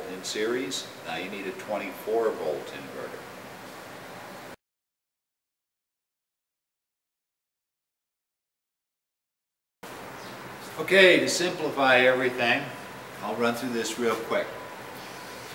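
A middle-aged man talks calmly and explains, close by.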